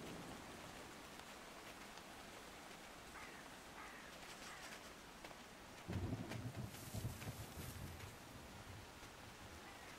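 A fox's paws patter quickly over the ground.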